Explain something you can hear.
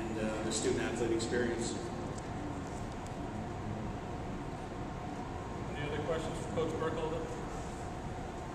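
A middle-aged man speaks calmly into a microphone with pauses, in a room with some echo.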